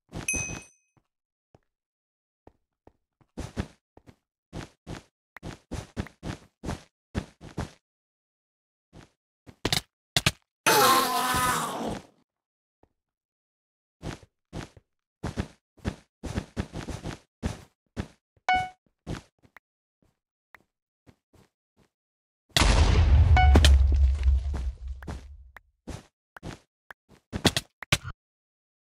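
Blocks are placed with quick, soft tapping thuds.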